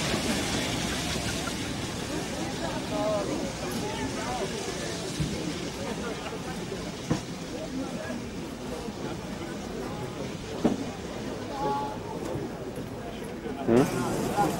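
A steam locomotive chuffs slowly as it moves along the tracks.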